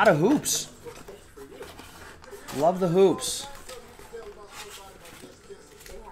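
Cardboard scrapes and rustles in hands.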